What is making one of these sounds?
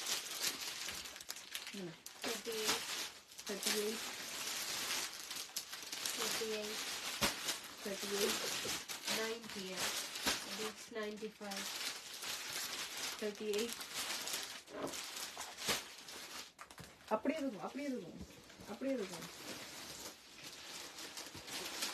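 Plastic packets crinkle and rustle as they are handled.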